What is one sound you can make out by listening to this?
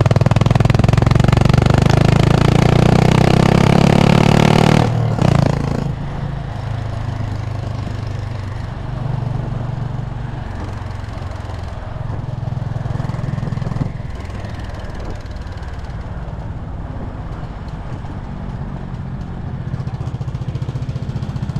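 A motorcycle engine hums steadily, louder at first and then easing off.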